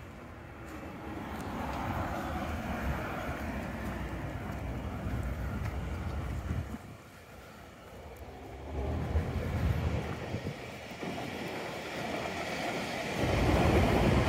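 Wind blusters outdoors in gusts.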